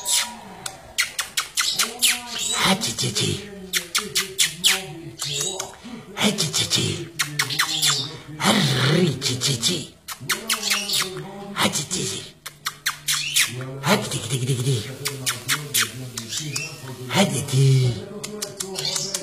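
A small songbird sings close by in quick, twittering trills and chirps.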